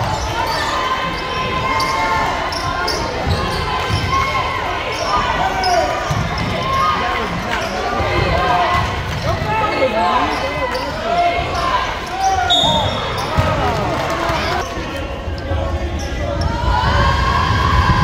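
A crowd of spectators talks and cheers in an echoing gym.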